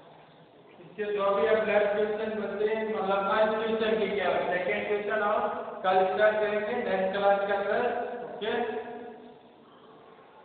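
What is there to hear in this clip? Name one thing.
A man speaks clearly and with animation, close by.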